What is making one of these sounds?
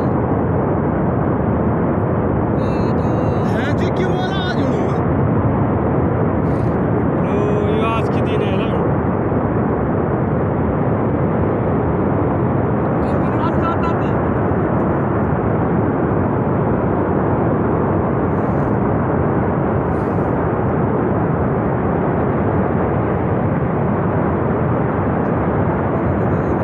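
A waterfall roars steadily, heard outdoors.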